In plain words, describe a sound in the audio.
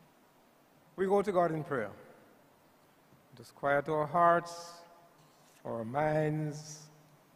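An elderly man speaks slowly into a microphone, with pauses between phrases, heard through a loudspeaker.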